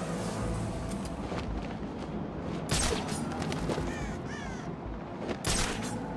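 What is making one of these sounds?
Wind rushes past a gliding figure's flapping cape.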